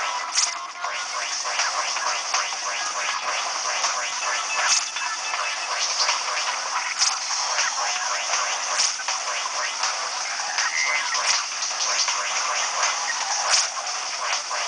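Arcade game explosions burst now and then.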